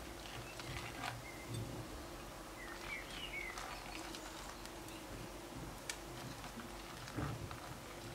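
Dry crumbs patter softly into a bowl.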